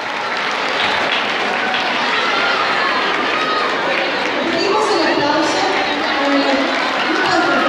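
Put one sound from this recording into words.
A crowd of people chatters loudly in a large echoing hall.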